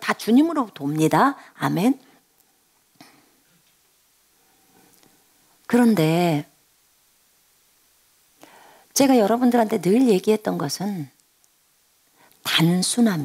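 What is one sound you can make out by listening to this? A middle-aged woman speaks with feeling into a close microphone, in bursts with pauses.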